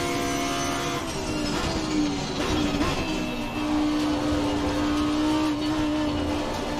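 A racing car engine drops in pitch as the car brakes and shifts down, then climbs again.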